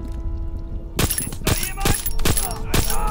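A silenced pistol fires several quick shots.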